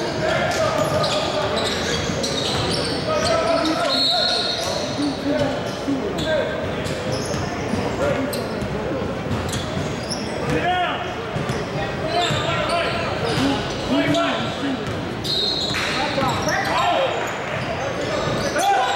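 Young men call out in a large echoing hall.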